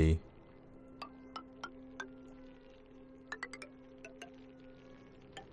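Short, bright game interface blips sound again and again.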